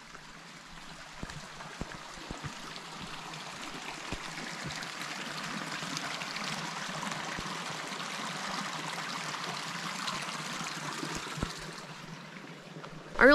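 A small creek trickles and babbles over stones.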